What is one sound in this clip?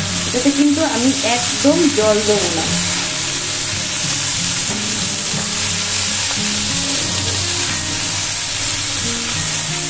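A spatula scrapes and stirs vegetables in a pan.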